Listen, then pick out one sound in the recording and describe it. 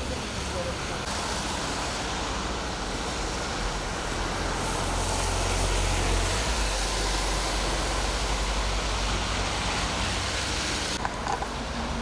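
Traffic hisses past on a wet road.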